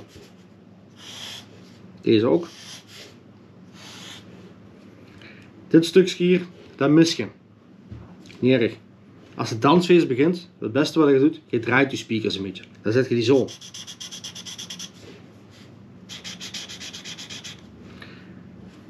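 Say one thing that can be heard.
A marker squeaks and scratches across a board.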